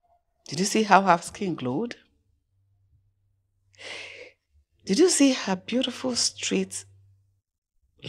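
A woman speaks warmly into a phone close by, with pauses.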